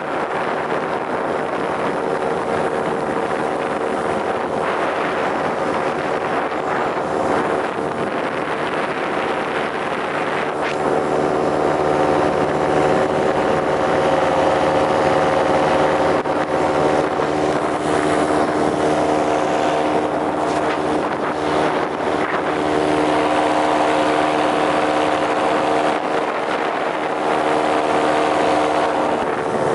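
A motor drones steadily.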